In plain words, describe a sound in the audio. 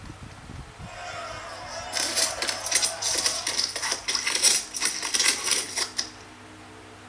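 A tablet game plays a busy, clattering battle noise.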